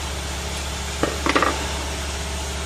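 Small metal parts clink as they are handled.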